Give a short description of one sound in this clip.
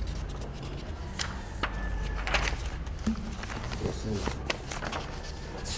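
Papers rustle and crinkle close to a microphone.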